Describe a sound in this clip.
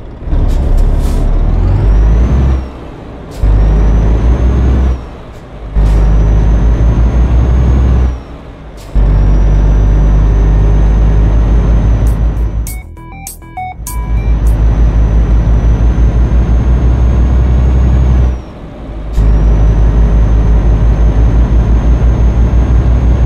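A truck engine rumbles low and revs up and down through gear changes.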